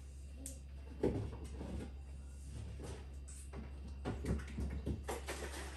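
Jars and bottles clink and rattle in a fridge door.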